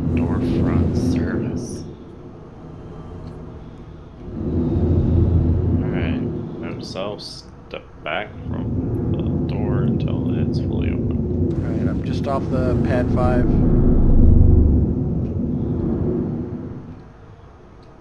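A spacecraft engine rumbles deeply, rising and falling.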